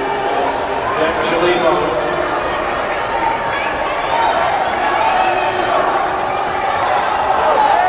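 A crowd in a large echoing hall cheers and chatters steadily.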